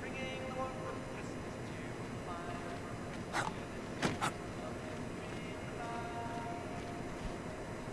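Soft footsteps shuffle on hard ground.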